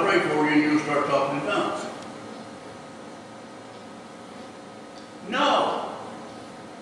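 A man speaks calmly through a microphone in a large echoing hall, in short bursts.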